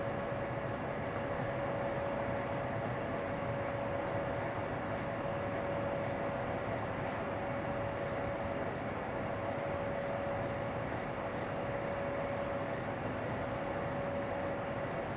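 Train wheels click rhythmically over the rails.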